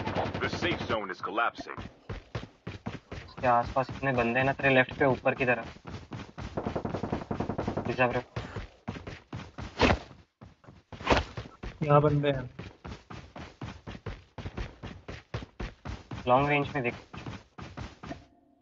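Footsteps run quickly over ground and grass.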